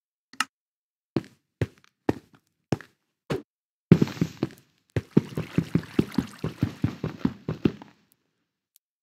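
A pickaxe strikes and chips at stone blocks in quick, repeated knocks.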